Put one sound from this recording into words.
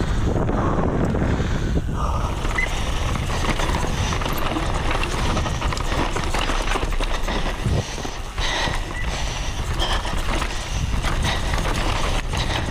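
Wind rushes loudly past a fast-moving rider.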